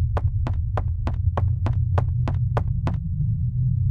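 Footsteps tap steadily on wooden boards.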